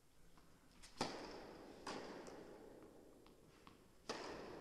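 A tennis ball is struck hard with a racket, echoing through a large hall.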